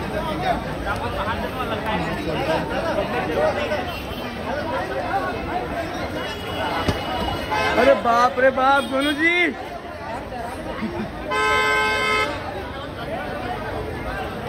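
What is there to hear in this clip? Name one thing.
A large crowd of men chatters and shouts loudly outdoors.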